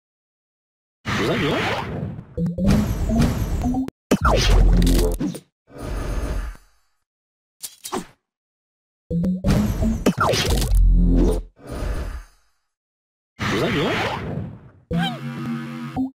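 Cartoonish popping and whooshing game sound effects burst out in quick runs.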